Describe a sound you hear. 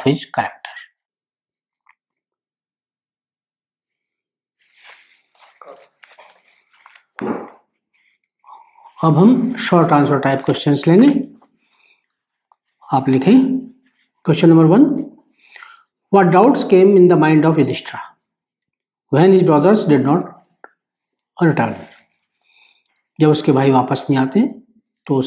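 A middle-aged man speaks calmly and clearly, close to a microphone, with pauses.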